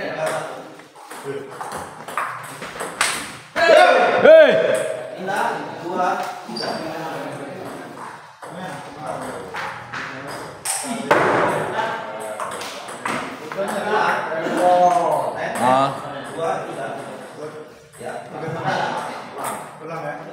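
A table tennis ball clicks off paddles and bounces on a table.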